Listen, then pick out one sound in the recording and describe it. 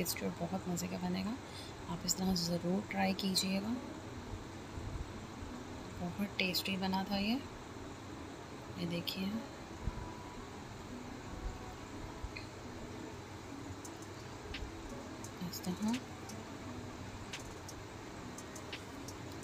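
Food sizzles gently in a pan.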